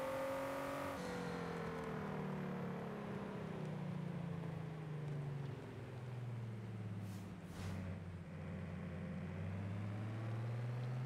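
A sports car engine rumbles low as the car slows for a bend and then speeds up again.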